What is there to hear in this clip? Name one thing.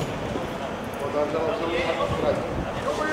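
Young men talk among themselves outdoors.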